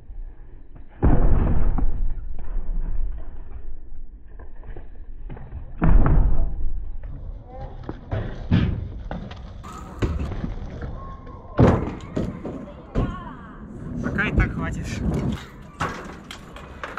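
A bicycle lands hard with loud thuds and rattles.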